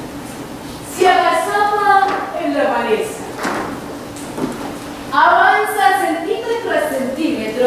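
A woman speaks loudly and with emotion in a large echoing hall.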